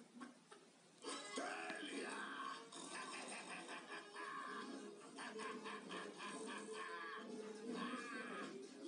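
A man cackles with glee.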